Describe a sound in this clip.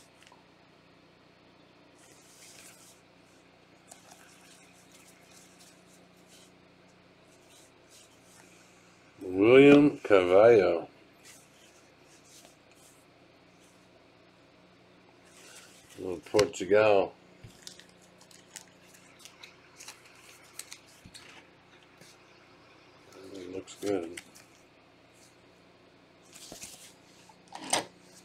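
Trading cards rustle and slide against each other.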